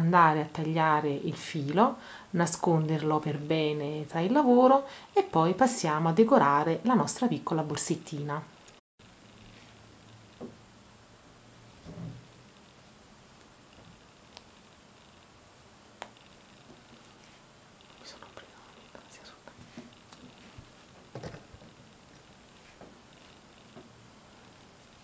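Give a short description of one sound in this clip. Hands softly rustle a knitted fabric.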